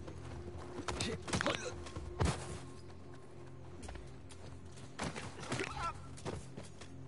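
Heavy punches thud in a brief scuffle.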